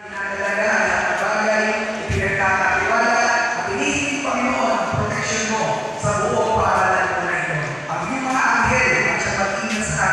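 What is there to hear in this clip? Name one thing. A crowd of young people sings together in a large echoing hall.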